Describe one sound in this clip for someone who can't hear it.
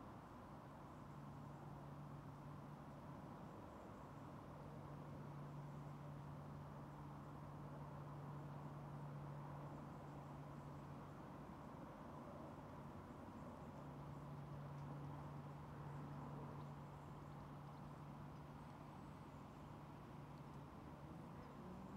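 A man hums long, steady low notes close to a microphone, with short pauses between them.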